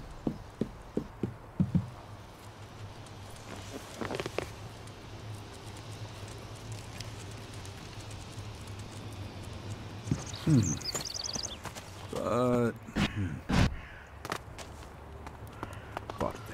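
Armoured footsteps clank on stone.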